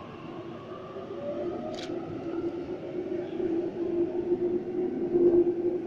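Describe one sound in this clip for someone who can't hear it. An electric passenger train rolls into the station with its motors whining.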